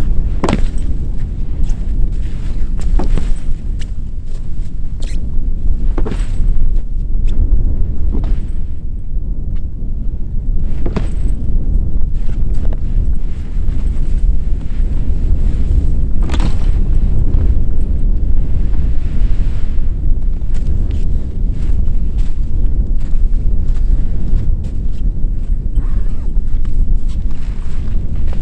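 Strong wind blows and buffets outdoors.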